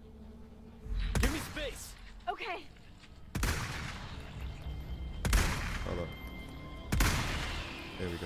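Loud rifle shots crack one after another, with a booming echo.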